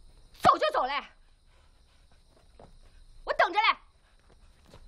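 A young woman speaks sharply and curtly nearby.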